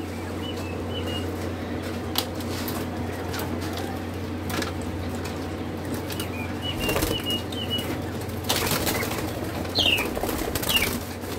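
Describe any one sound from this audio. Chicks peep softly.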